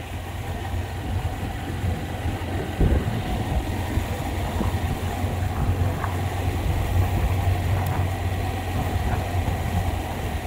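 Wind buffets past the rider.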